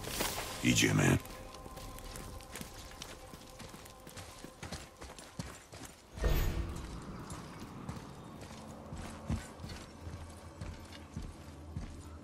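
Heavy footsteps crunch on snow and dirt.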